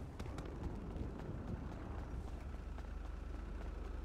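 Footsteps run quickly across pavement.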